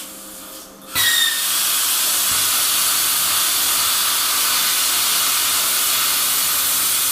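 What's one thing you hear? A welder crackles and hisses steadily.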